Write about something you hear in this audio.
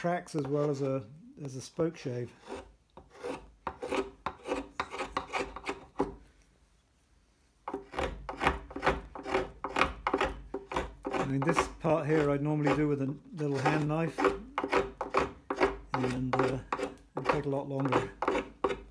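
A hand file rasps in short strokes against wood.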